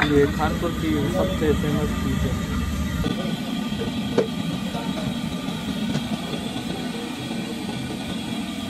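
Hot oil sizzles and bubbles in a pan.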